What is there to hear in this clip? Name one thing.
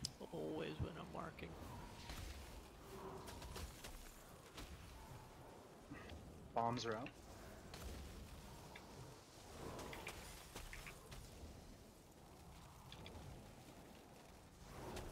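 Magic spells crackle and whoosh in a fantasy battle.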